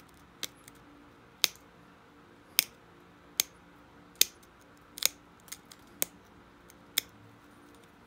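Sharp stone chips snap and click as a tip presses flakes from a stone blade.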